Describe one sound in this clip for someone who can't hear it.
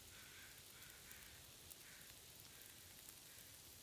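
A campfire crackles softly.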